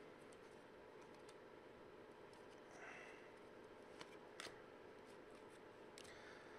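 Cards rustle and click as hands shuffle through them.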